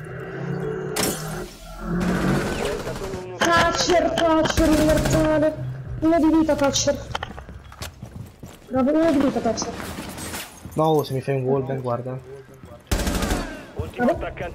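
Gunshots bang out in short bursts.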